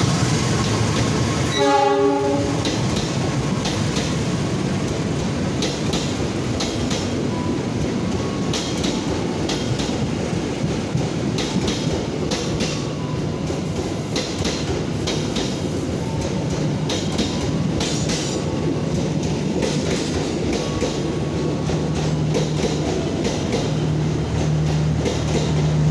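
A train rolls past with a steady rumble.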